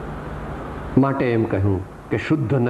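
An elderly man chants slowly, close by.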